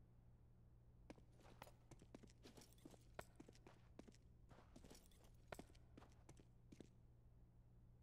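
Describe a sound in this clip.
Footsteps tap quietly on hard ground.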